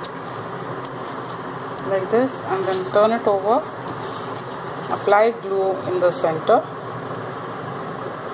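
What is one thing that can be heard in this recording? A leaf rustles softly as hands handle it.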